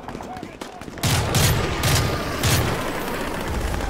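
A rifle fires loud, sharp shots close by.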